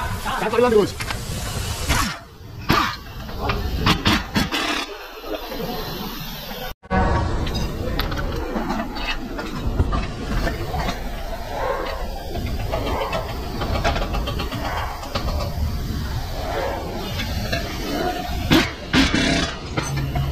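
An impact wrench rattles in short bursts.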